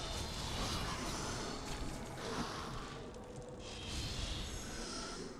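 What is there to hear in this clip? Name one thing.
Hands and feet scrape against rock during a climb.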